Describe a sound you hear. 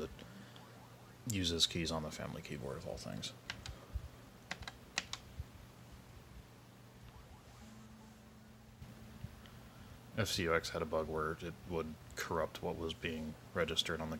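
A video game beeps and plays sounds through a small television speaker.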